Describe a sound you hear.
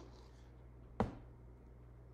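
A knife taps against a plate.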